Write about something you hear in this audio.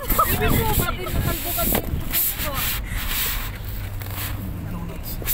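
Strong wind gusts loudly outdoors, buffeting and rumbling.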